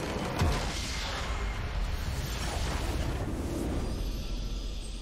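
Game effects whoosh and crash loudly.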